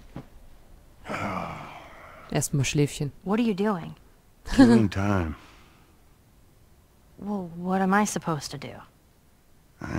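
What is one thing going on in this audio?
A young girl asks questions with mild annoyance.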